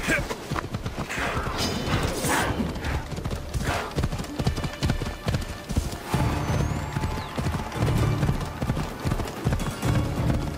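Horse hooves clop on dirt and gravel.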